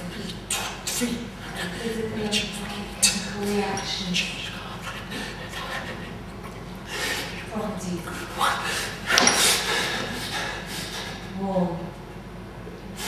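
A man speaks with feeling in a large room.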